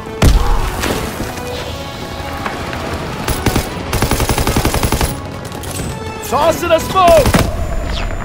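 Rifles fire in rapid bursts.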